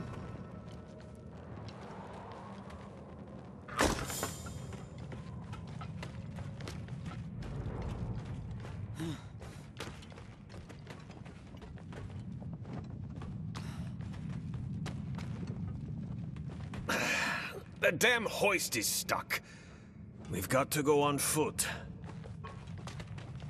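Weapons clash and strike in a fight, with short sharp hits.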